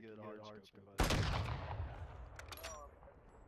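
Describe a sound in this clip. A sniper rifle fires a loud shot that echoes away.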